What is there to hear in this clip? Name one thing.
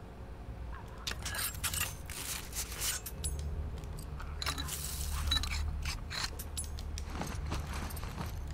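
Small items clatter and clink as something is put together by hand.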